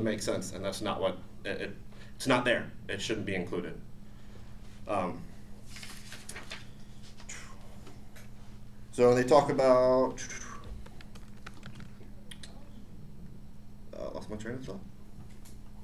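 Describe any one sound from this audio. A man speaks calmly nearby, with long pauses between phrases.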